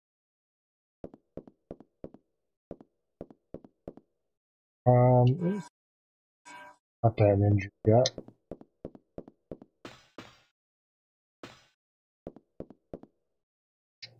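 Footsteps tap on a hard floor at an even pace.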